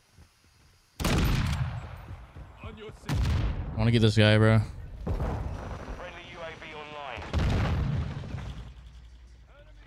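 Gunshots crack sharply and ring out.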